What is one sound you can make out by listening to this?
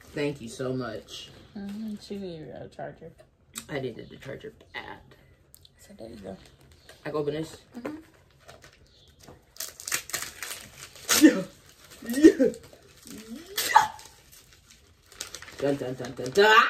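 Paper and packaging rustle and crinkle.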